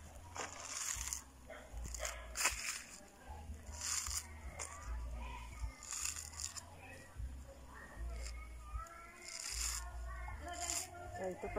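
Fibrous husk tears and rustles in short bursts.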